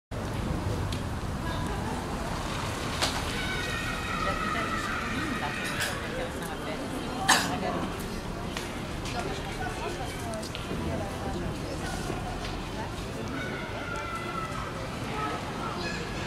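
Outdoors, a crowd murmurs and chatters in the background.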